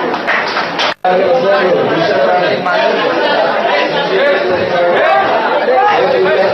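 A crowd of young men shouts encouragement nearby.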